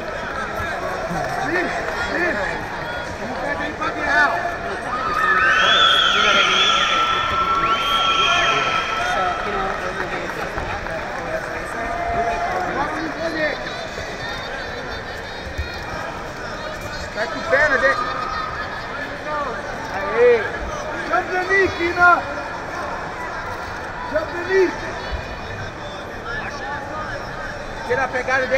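A large crowd murmurs and cheers, echoing in a big hall.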